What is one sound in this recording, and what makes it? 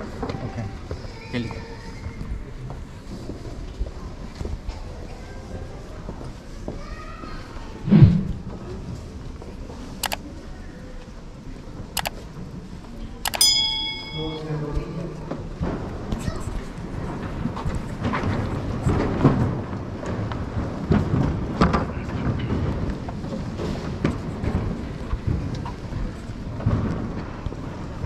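A crowd murmurs and talks quietly in a large echoing hall.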